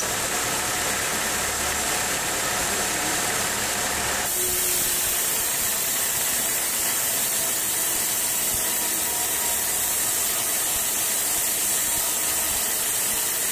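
A band saw whines loudly as it cuts through a thick timber log.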